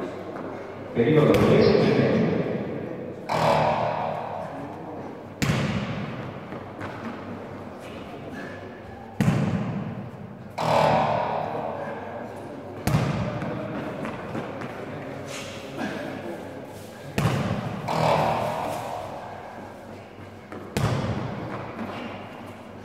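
Heavy thuds boom through a large echoing hall.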